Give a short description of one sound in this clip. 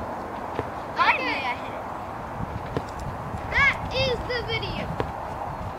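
A boy calls out loudly outdoors.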